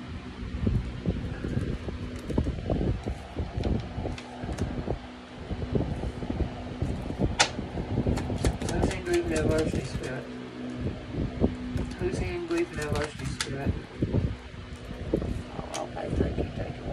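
Playing cards shuffle and slap softly onto a table.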